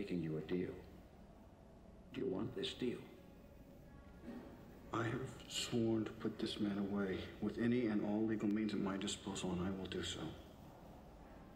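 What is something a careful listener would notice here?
A man speaks quietly and intently, close by.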